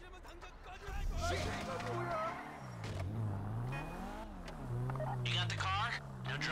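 A car engine revs and roars as a car drives off.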